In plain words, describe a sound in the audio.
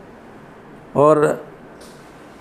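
A man speaks briefly into a microphone, close by.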